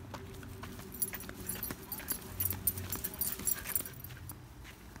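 A dog runs and its paws swish quickly through grass close by.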